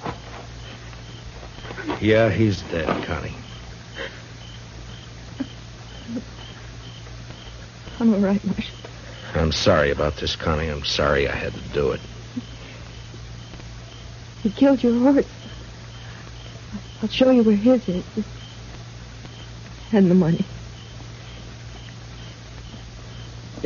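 A wood fire crackles and pops softly.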